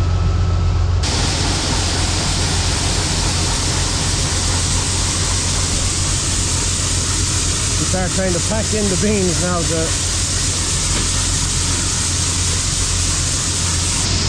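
Grain pours and hisses loudly into a trailer.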